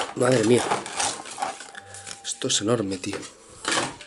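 A paper card rustles as it is pulled out.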